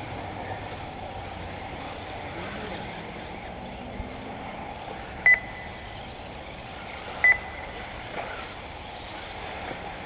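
Small remote-controlled cars whine faintly around a track in the distance.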